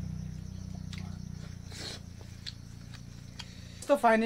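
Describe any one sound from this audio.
A man chews food with his mouth close by.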